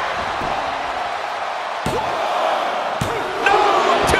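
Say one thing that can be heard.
A referee's hand slaps the mat several times in a count.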